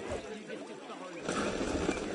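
Water splashes in a fountain close by.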